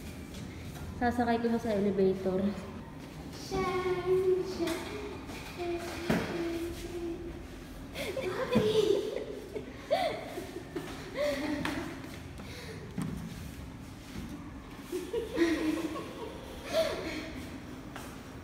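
A young girl talks and laughs excitedly close by.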